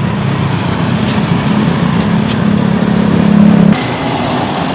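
A motorbike engine hums as it passes along a road.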